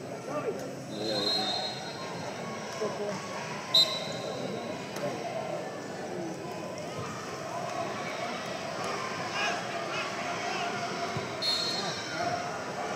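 A referee blows short shrill whistle blasts.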